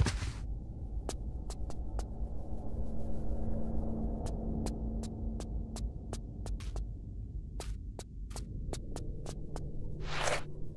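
Footsteps slap quickly on a stone floor.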